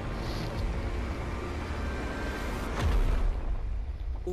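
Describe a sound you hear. A stone cliff crumbles with a deep rumble.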